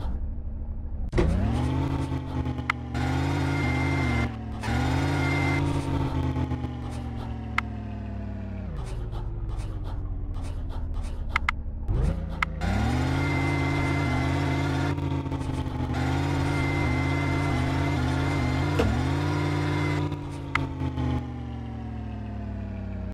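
An off-road vehicle's engine revs hard and drops back to idle again and again.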